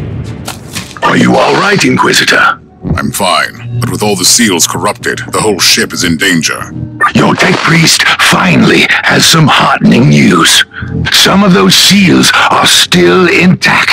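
A man speaks calmly into a close microphone.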